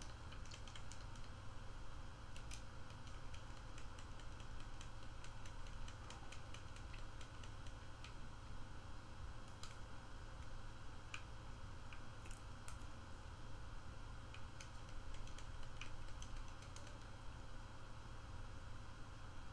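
Small coins jingle as they are picked up.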